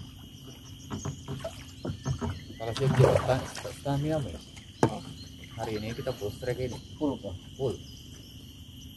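A man talks with animation nearby.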